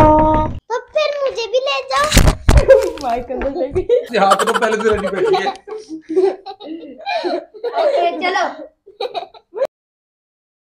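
A young girl talks and giggles with animation, close by.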